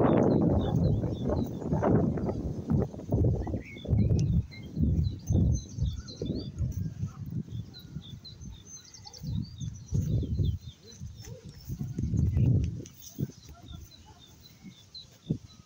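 Trees rustle and thrash in the wind.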